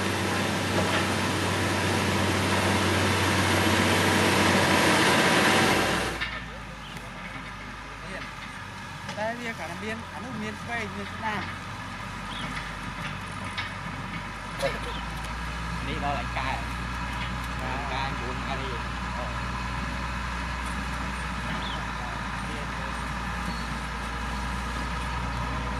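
A grader blade scrapes and pushes loose dirt and stones.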